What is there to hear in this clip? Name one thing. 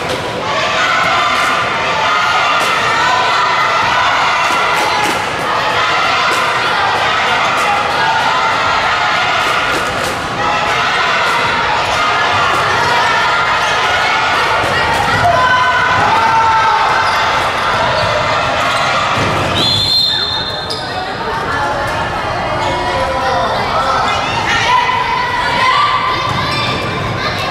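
A crowd of young spectators cheers and chants loudly in an echoing hall.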